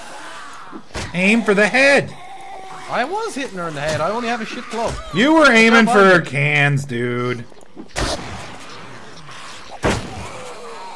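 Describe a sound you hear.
Heavy blows thud into flesh.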